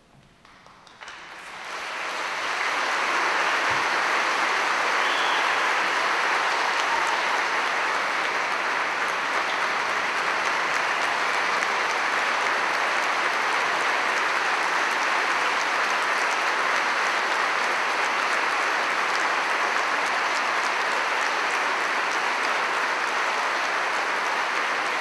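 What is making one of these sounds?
A large congregation applauds loudly in an echoing hall.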